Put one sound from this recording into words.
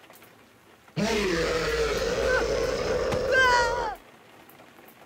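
A creature lets out a loud, shrieking roar.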